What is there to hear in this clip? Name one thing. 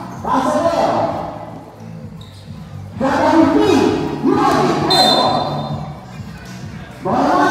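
A crowd of spectators shouts and cheers loudly outdoors.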